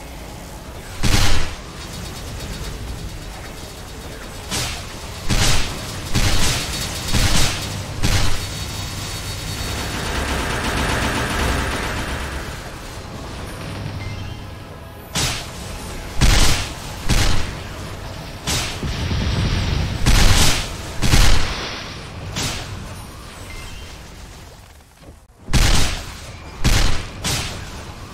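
Game attack effects blast and boom in rapid bursts.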